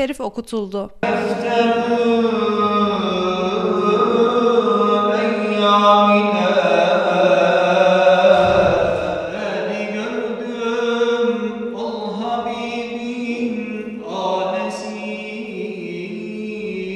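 A man chants a slow, melodic recitation in a large echoing hall.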